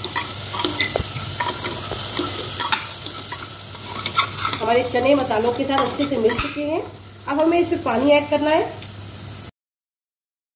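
A metal spatula scrapes and clinks against a pot while stirring.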